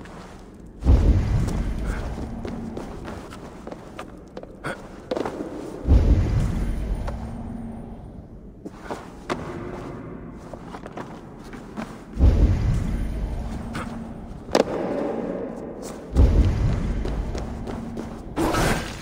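A deep whooshing boom swells and slowly fades.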